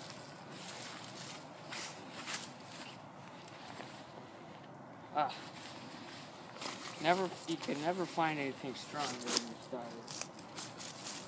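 Fabric rustles as a jacket is handled.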